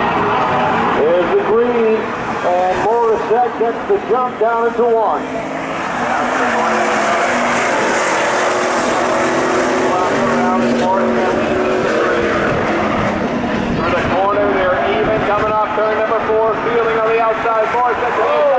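Tyres squeal shrilly as cars slide around a bend.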